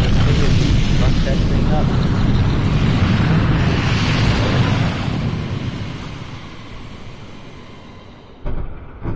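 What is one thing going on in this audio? A deep, loud roar of energy blasts rumbles and slowly fades.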